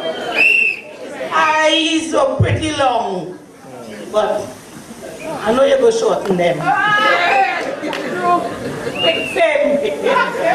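A woman speaks through a microphone and loudspeakers in a large echoing hall.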